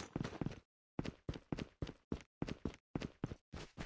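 Footsteps tread steadily through grass.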